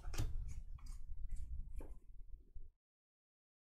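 Trading cards shuffle and riffle softly in hand.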